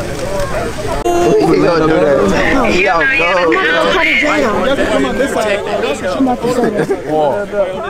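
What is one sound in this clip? A crowd of people murmur and chatter outdoors.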